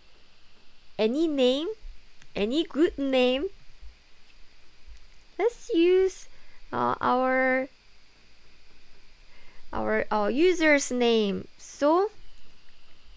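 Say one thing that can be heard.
A young woman speaks animatedly and playfully into a nearby microphone, with pauses between phrases.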